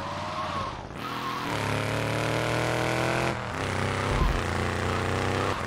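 A car engine roars steadily as the car speeds along.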